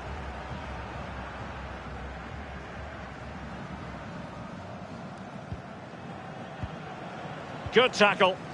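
A stadium crowd murmurs and roars steadily in the distance.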